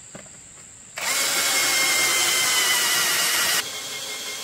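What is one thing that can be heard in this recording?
A power drill whirs loudly as it bores into bamboo.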